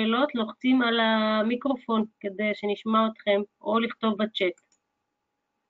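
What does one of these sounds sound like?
A young woman sings closely into a microphone.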